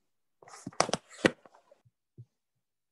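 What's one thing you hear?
Fingers rub and knock against a microphone up close.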